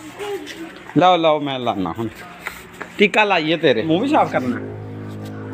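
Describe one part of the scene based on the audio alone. A little girl speaks and laughs close by.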